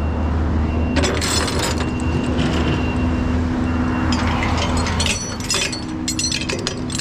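Metal chains clank and rattle.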